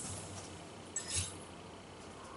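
A short electronic chime sounds.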